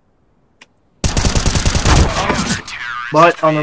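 Rapid gunfire rattles in a burst.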